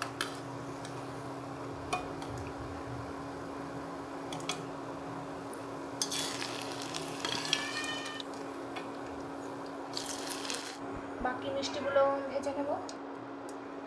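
A metal ladle clinks against a metal pan.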